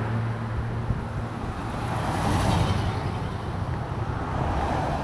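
A pickup truck drives past on the road close by, rising and fading.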